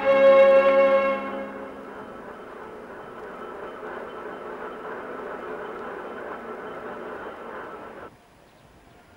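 A crane's winch hums as it hoists a load.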